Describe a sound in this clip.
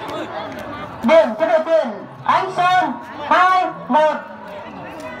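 Men on the court shout loudly.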